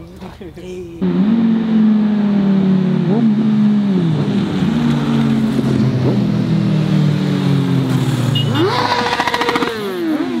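A motorcycle engine revs loudly.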